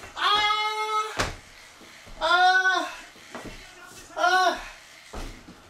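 A man shouts loudly and excitedly nearby, in long drawn-out cries.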